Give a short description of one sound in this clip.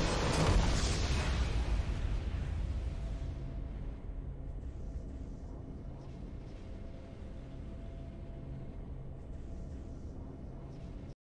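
A triumphant game fanfare swells and slowly fades into soft music.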